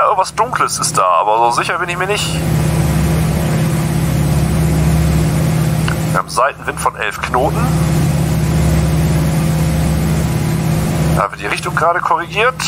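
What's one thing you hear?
A man talks through a headset microphone, in short bursts.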